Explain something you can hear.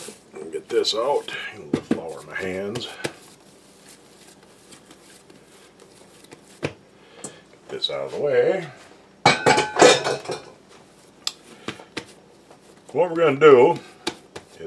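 Hands knead and pat soft dough.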